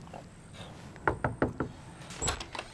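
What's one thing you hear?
A man knocks on a wooden door.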